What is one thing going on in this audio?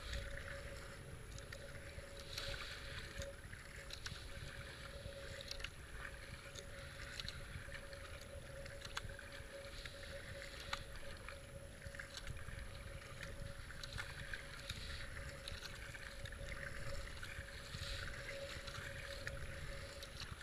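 Water rushes and laps against a kayak's hull.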